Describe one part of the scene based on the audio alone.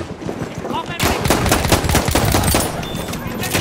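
A pistol fires rapid, loud shots.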